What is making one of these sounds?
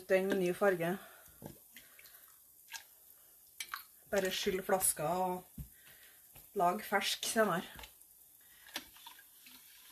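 A spoon clinks and scrapes against a metal pot.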